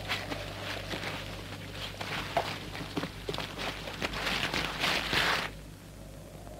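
A body scrapes and slides through wet mud.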